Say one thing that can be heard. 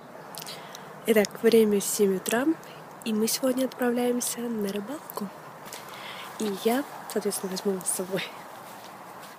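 A young woman talks close to the microphone in a casual, animated way.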